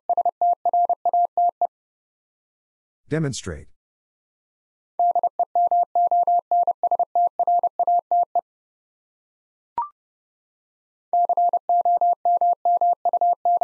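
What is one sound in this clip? A Morse code key beeps out short and long tones.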